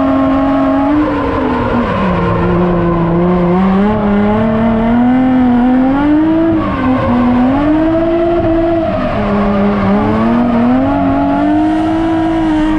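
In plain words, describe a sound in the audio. A car engine roars loudly from inside the cabin, revving up and down.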